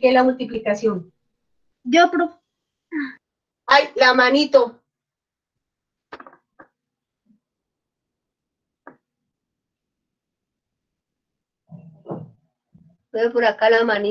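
A woman speaks calmly and clearly, heard through an online call.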